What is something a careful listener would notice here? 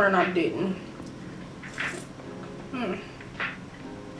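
A young woman sips from a mug.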